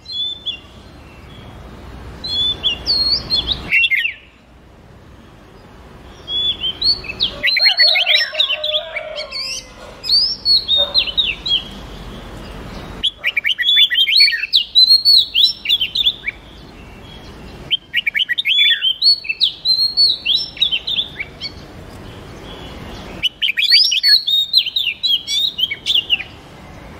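Songbirds sing in bursts of bright chirps and whistles.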